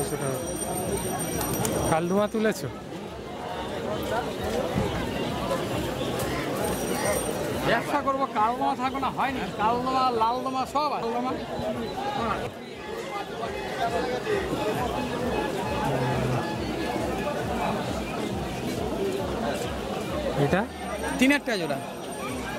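Pigeons coo and flutter nearby.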